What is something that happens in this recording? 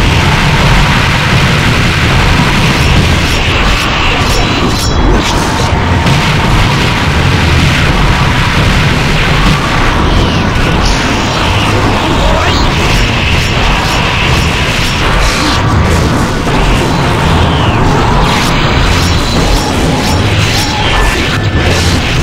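Loud video game blasts and hits crash rapidly.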